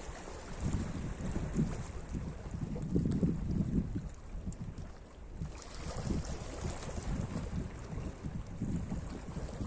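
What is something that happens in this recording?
Small waves lap gently against rocks on a shore.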